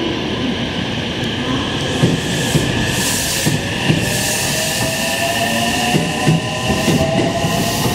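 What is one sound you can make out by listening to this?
Train brakes squeal with rising, whining tones as the train slows.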